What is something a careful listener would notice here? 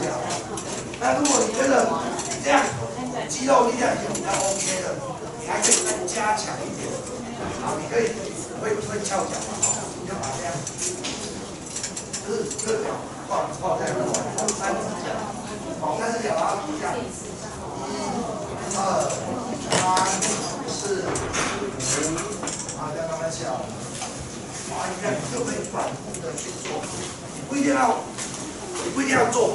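A crowd of adults chatters in a room with some echo.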